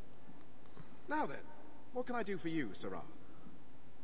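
A middle-aged man speaks up briskly and cheerfully.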